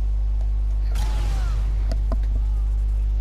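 A person jumps and lands with a thump on a wooden dock.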